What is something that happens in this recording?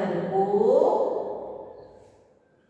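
A woman speaks aloud, drawing out her words.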